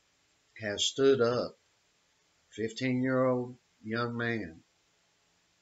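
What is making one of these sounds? A middle-aged man speaks calmly and close to a microphone, in short phrases.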